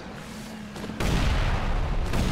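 An explosion bursts with a loud crackling boom.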